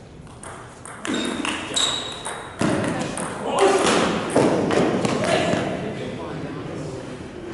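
A ping-pong ball clicks back and forth off paddles and a table in an echoing hall.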